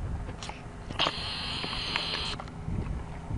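A horse whinnies with its mouth wide open.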